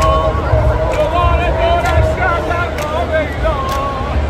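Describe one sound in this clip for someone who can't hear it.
A man chants loudly with strong feeling.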